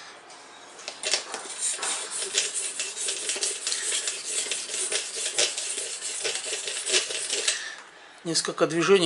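A sharpening stone scrapes rhythmically along a knife blade.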